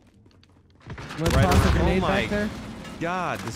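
An explosion bursts nearby with a deep boom.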